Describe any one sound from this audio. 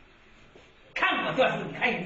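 A man suddenly shouts loudly.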